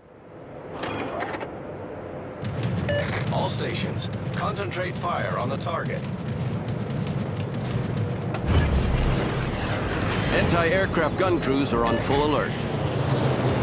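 Anti-aircraft guns fire in rapid bursts.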